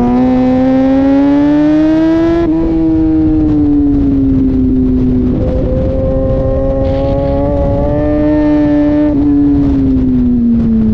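A motorcycle engine roars loudly up close, rising and falling in pitch as gears shift.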